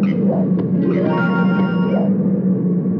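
A bright chime rings out.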